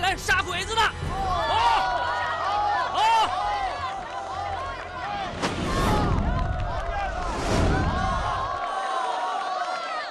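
A crowd of men cheers and shouts loudly outdoors.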